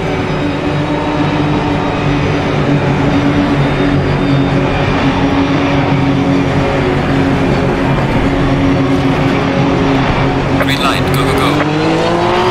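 A race car engine idles with a steady, low rumble.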